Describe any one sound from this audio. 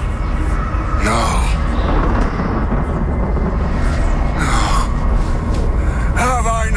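A man speaks slowly and solemnly nearby.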